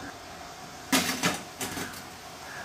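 A metal plate clinks against a steel steamer pot.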